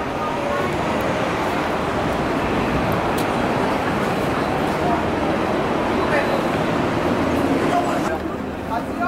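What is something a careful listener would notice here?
City street traffic and bustle hum steadily outdoors.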